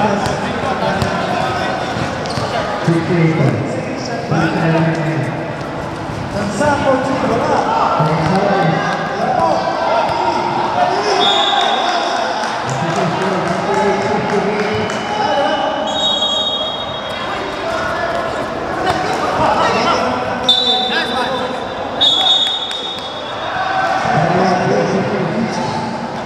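Young men shout and call out during a basketball game in a large echoing hall.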